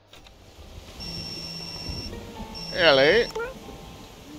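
A phone rings with a repeating electronic tone.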